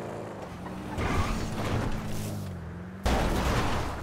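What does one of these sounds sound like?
A car engine roars at speed.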